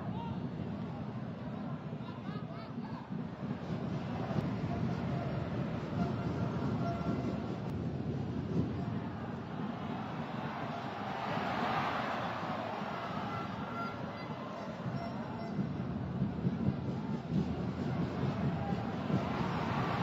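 A large crowd murmurs and roars across an open stadium.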